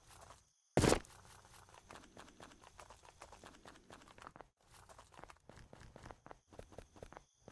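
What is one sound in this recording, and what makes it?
Footsteps tread steadily across the ground.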